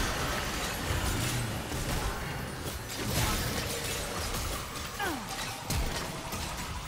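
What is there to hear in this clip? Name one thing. Game sound effects of spells and hits burst and whoosh.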